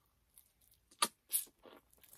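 Fried food crunches as a man bites into it.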